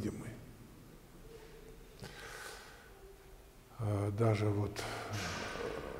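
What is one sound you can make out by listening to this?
An elderly man speaks calmly and slowly, close to a microphone.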